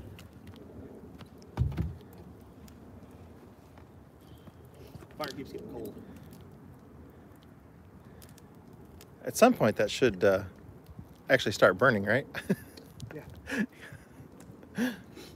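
A fire crackles and pops in a barrel.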